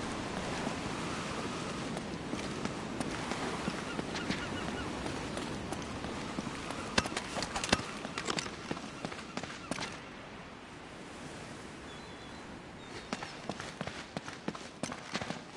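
Footsteps run over stone and grass.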